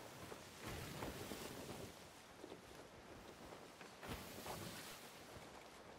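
Sea waves wash against a wooden ship.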